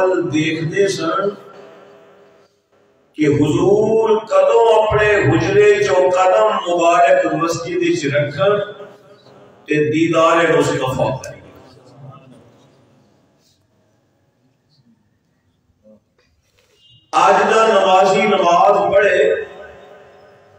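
A man speaks with animation into a microphone, in bursts with long pauses, in a room with some echo.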